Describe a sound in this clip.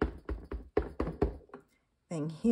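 A rubber stamp taps repeatedly on an ink pad.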